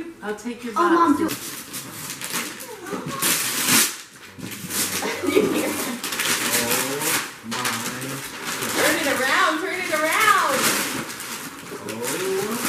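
Wrapping paper rustles and tears as a young boy opens a present.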